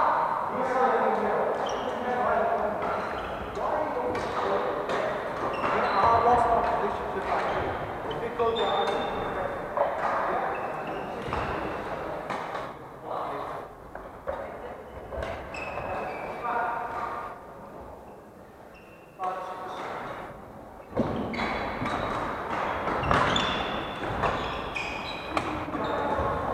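Shoes squeak and thud on a wooden floor.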